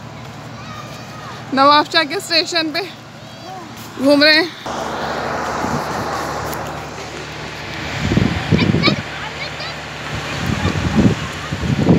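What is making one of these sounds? Footsteps scuff on paving stones.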